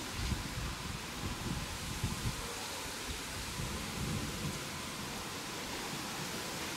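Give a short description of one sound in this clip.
Leaves rustle in the trees.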